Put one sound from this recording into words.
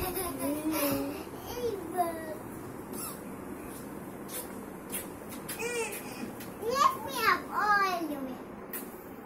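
A little girl squeals and laughs excitedly close by.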